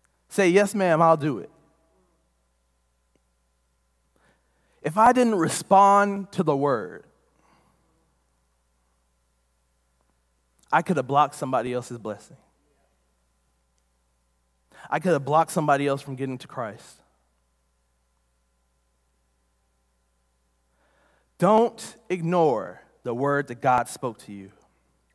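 A man speaks into a microphone with pauses between phrases.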